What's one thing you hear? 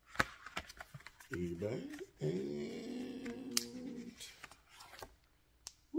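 Paper rustles as a card is unfolded.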